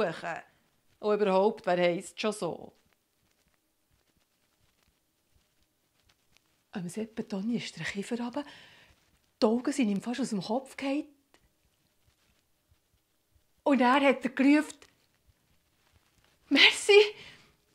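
A woman speaks expressively into a nearby microphone, with pauses between phrases.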